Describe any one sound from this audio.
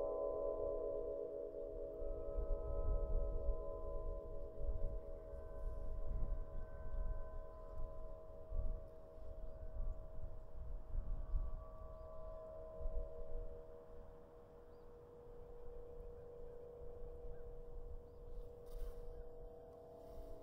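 Harp strings hum in the wind with steady, overlapping ringing tones.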